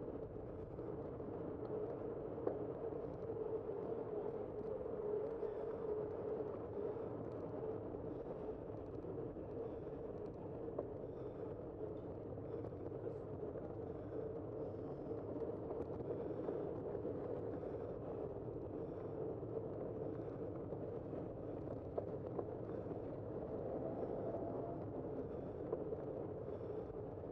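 Bicycle tyres roll along a paved road.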